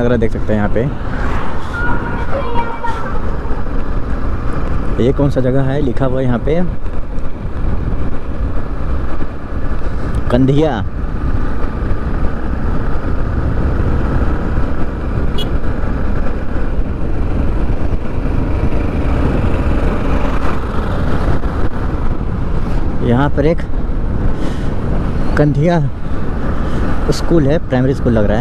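Wind rumbles loudly against the rider.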